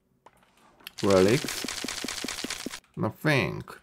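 A block breaks apart with a crumbling, crackling crash.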